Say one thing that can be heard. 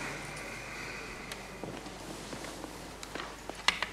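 Clothing rustles.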